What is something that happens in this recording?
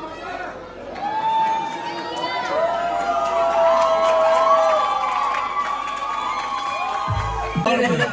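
A crowd sings along.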